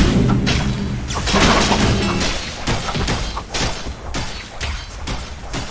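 Game spell effects burst and crackle in a fight.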